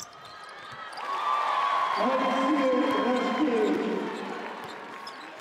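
A crowd cheers in a large echoing arena.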